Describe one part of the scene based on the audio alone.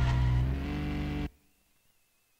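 A car engine revs loudly, then cuts off abruptly.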